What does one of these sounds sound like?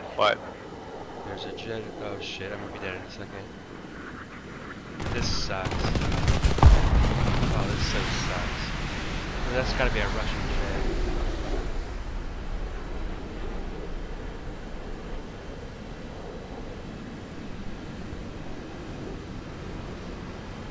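Propeller engines of an aircraft drone steadily.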